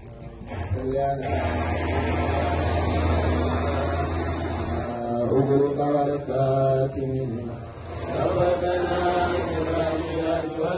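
Men's voices chant loudly through a loudspeaker.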